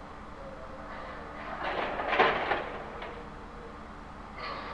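A metal lift gate rattles open.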